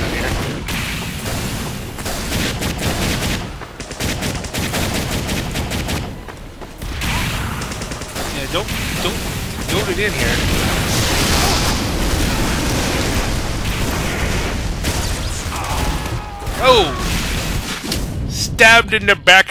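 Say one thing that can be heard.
A flamethrower roars in bursts.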